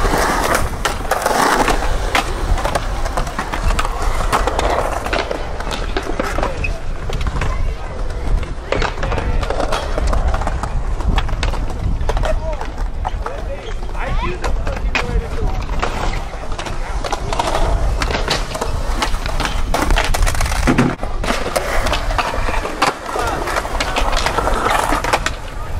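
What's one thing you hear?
A skateboard clacks and slaps down hard on concrete.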